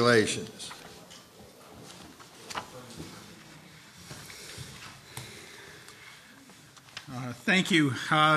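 Paper rustles as pages turn.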